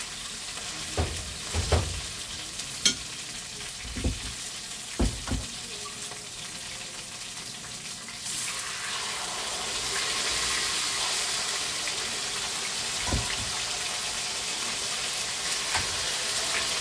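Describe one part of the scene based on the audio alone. A metal fork clinks against a pan and a bowl.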